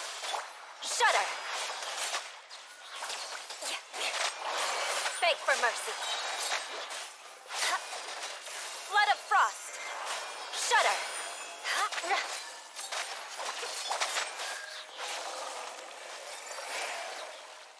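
Game sword slashes and magic blasts crackle and whoosh in quick bursts.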